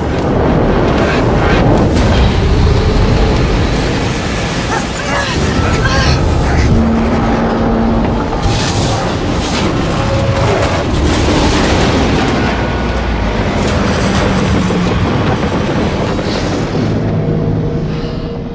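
A huge explosion roars and rumbles deeply.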